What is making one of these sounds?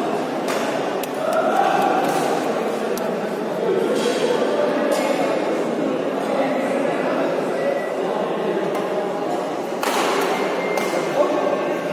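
Shuttlecocks are hit with rackets with sharp pops.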